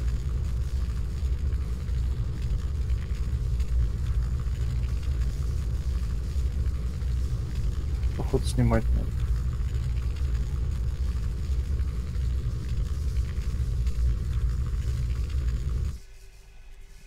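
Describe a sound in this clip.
A fire roars with a steady, deep rumble.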